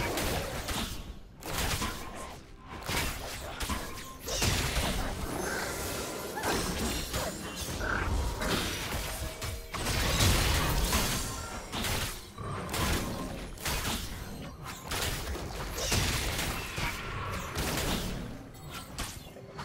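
Fantasy battle sound effects clash, zap and crackle in quick bursts.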